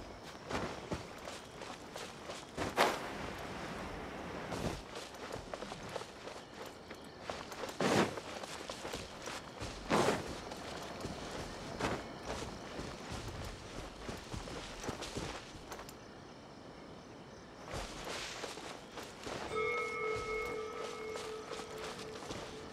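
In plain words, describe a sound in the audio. Footsteps patter through grass.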